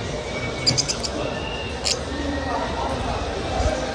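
A budgie flutters its wings.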